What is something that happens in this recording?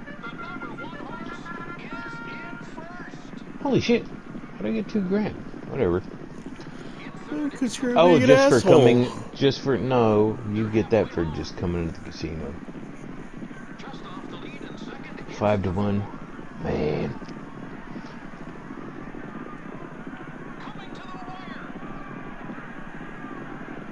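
Horses gallop, hooves drumming on turf.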